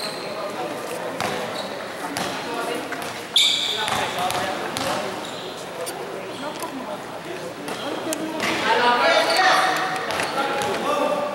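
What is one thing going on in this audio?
Young players shout and call out across the court.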